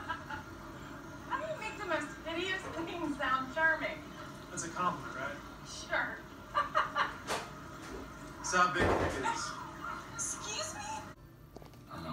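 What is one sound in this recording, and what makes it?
A young woman laughs, heard through a television speaker.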